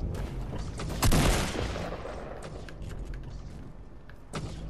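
Wooden walls are quickly built with sharp thuds.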